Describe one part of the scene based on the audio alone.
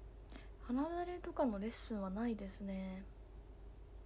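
A young woman speaks close to a microphone, in a lively, sing-song voice.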